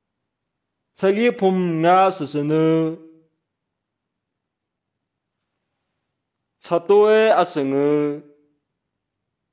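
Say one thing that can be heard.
A man speaks calmly and closely.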